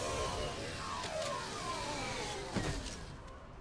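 A hovering vehicle's thrusters hiss and roar, then fade.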